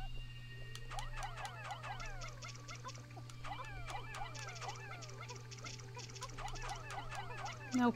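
Tiny cartoon creatures chirp and squeak in quick high voices.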